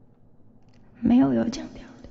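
A young woman speaks briefly close into a microphone.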